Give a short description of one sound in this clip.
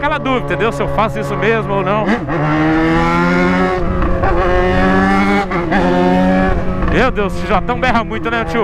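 A motorcycle engine roars loudly, revving up through the gears and blipping sharply between shifts.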